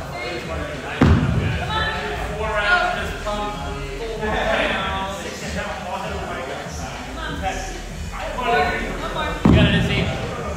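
Dumbbells thud heavily onto a rubber floor.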